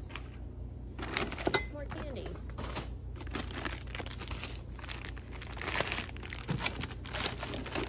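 Objects clatter and rustle as they are moved around in a plastic bin.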